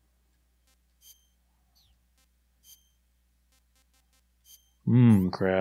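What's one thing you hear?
Short electronic beeps chime as menu choices are made.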